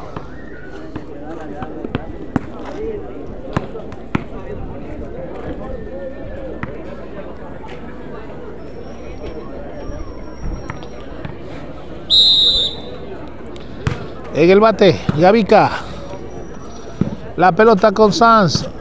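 A crowd chatters outdoors in the background.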